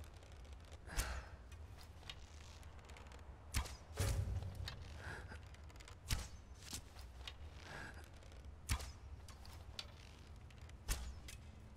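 A bowstring twangs sharply as arrows fly, several times.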